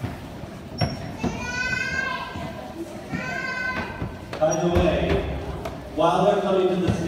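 Young children shriek and squeal excitedly.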